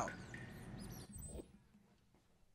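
A short menu chime sounds.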